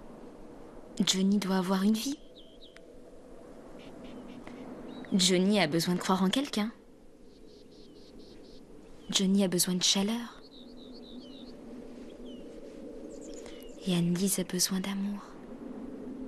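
A young woman speaks softly and earnestly nearby.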